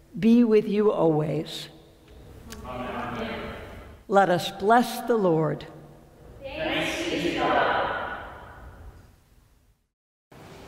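A woman sings a chant through a microphone in a large echoing hall.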